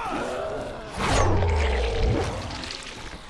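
A blade slashes into flesh with a wet, heavy thud.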